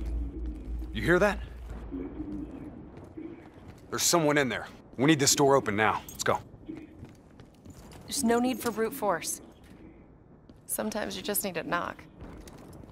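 A man speaks urgently nearby, in short bursts.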